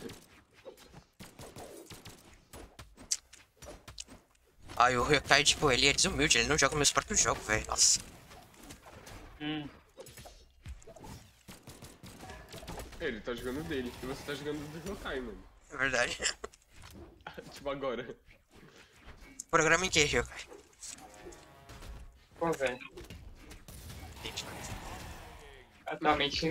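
Game sound effects of blows and whooshes sound in quick bursts.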